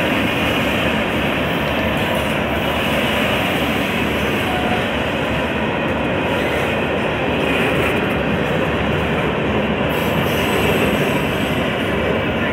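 Freight cars rumble past close by.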